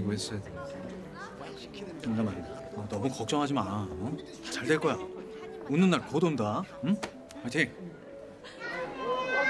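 A man speaks with animation close by.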